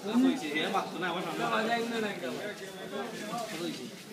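A second man laughs and answers close by.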